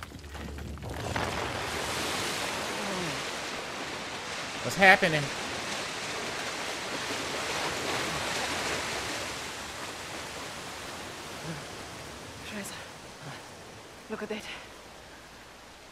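A waterfall rushes and splashes steadily.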